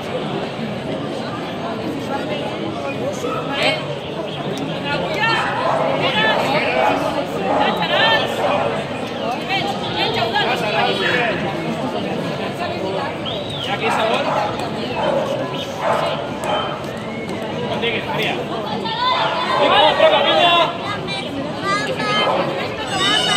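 A crowd of people chatters and calls out loudly all around, outdoors.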